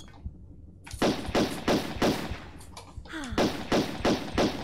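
Heavy footsteps thud in a quick, even rhythm.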